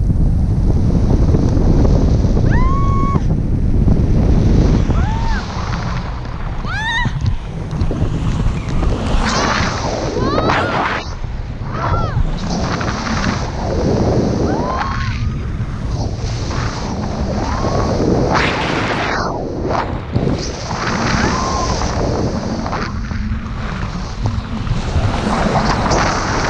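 Strong wind roars and buffets close by.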